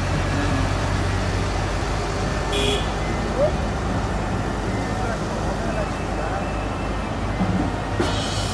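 A pickup truck's engine hums as it drives by.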